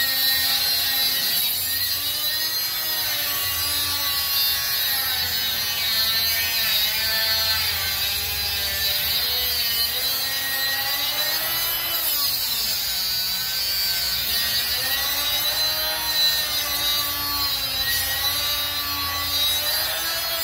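An angle grinder whines as it grinds a steel bar, its pitch dipping under load.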